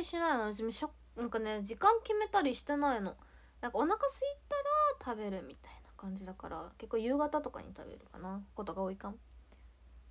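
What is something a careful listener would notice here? A young woman speaks softly and close to the microphone.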